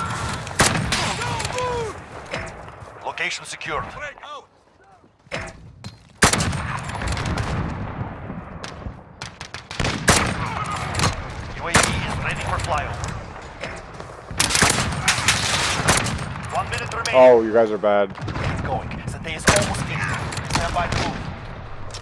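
Gunshots ring out in quick bursts.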